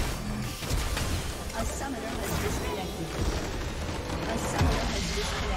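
Game spell effects crash and clatter during a fight.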